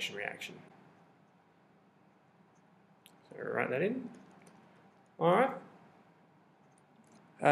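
A young man speaks calmly and closely into a microphone, in short phrases.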